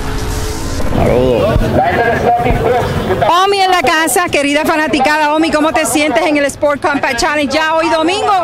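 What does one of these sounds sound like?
A woman speaks with animation into a microphone outdoors.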